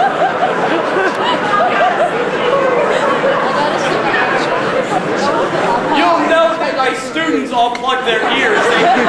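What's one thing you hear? A man speaks aloud in a large echoing hall.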